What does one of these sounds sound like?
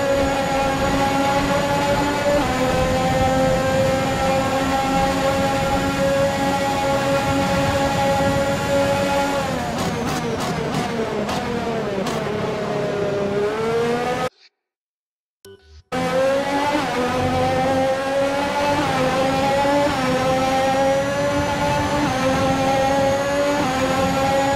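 A racing car engine roars at high revs, dropping in pitch as it slows and rising again as it speeds up.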